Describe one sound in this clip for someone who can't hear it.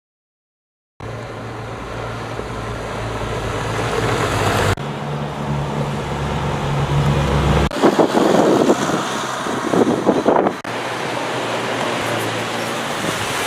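Tyres crunch on gravel.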